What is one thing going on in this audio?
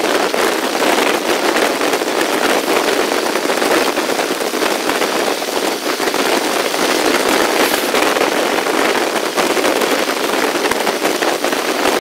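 Wind rushes loudly past an open train door.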